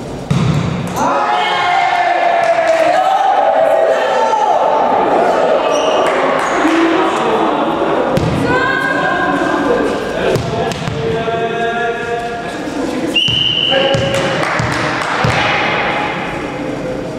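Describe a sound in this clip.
Young men shout and call out across a large echoing gym.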